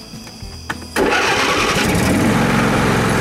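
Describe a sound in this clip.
A vehicle engine cranks and starts.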